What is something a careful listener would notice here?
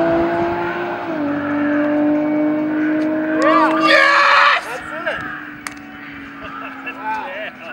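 A racing car engine drones steadily as the car speeds away into the distance and fades.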